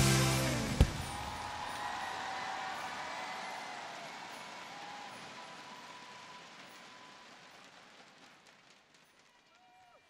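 A band's music ends and its sound fades away in a large echoing hall.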